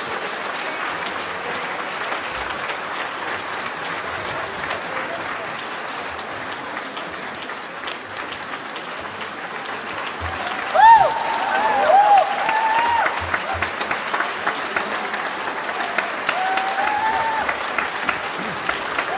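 An orchestra plays outdoors, with strings and brass sounding together.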